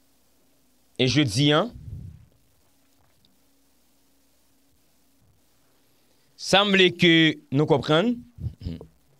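A young man speaks calmly and closely into a microphone, in short bursts with pauses.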